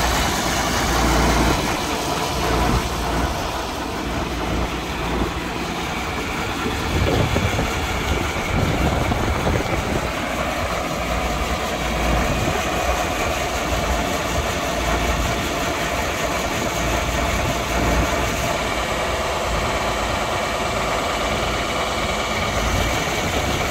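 A tractor engine idles nearby with a steady rumble.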